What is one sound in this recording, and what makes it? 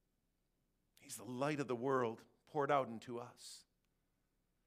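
A man speaks calmly and clearly through a microphone.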